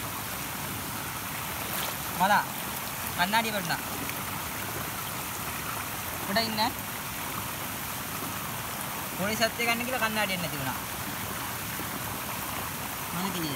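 Water flows steadily.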